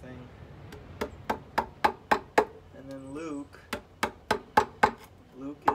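A hammer strikes a chisel into wood in steady, ringing blows.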